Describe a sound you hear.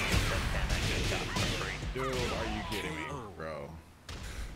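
Punches and kicks land with heavy impact hits.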